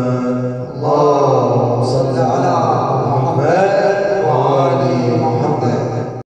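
A young man sings into a microphone, his voice carried through loudspeakers.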